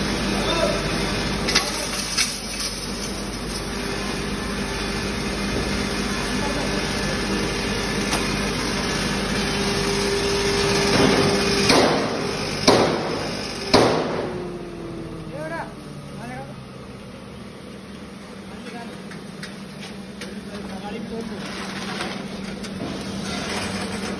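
A grinding mill roars steadily with a loud mechanical hum.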